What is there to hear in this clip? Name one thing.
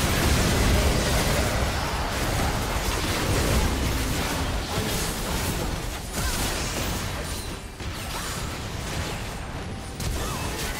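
Game spell effects crackle and burst during a fast fight.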